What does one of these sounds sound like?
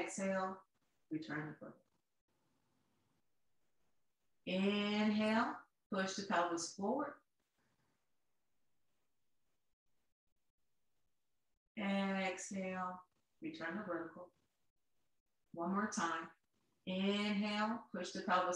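A woman speaks calmly and slowly, close by, in short phrases with pauses.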